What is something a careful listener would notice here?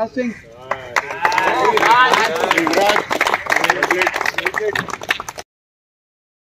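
A group of men clap their hands.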